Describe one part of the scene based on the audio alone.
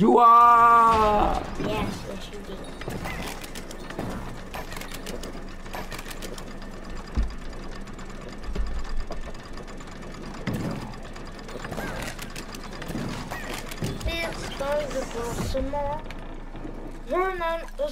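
Large gears turn with a mechanical clatter.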